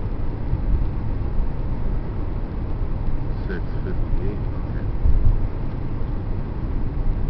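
Tyres roll on the road with a steady low rumble.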